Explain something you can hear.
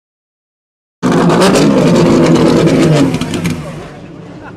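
A race car engine roars loudly nearby.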